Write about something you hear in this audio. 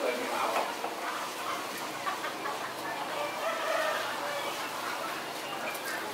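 Water sloshes and splashes as a bird is dunked in a pot.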